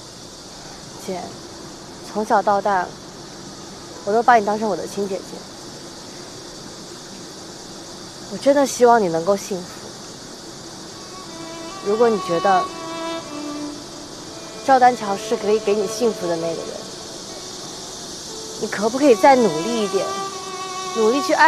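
A young woman speaks softly and earnestly nearby.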